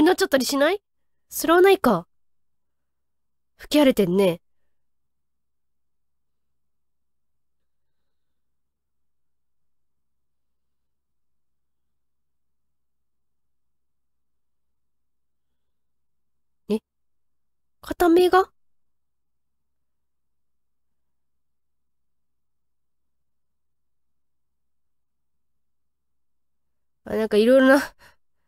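A young woman speaks in short bursts through a microphone, with long silences between.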